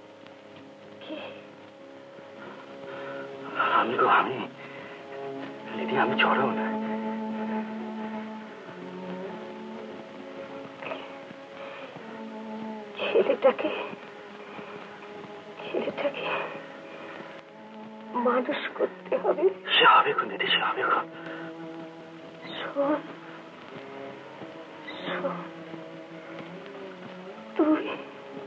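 A man speaks softly and tenderly, close by.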